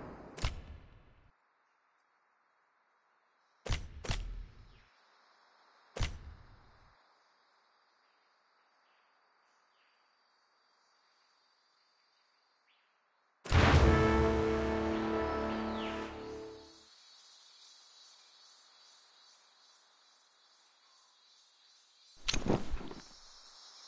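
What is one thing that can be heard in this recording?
Game menu buttons click sharply a few times.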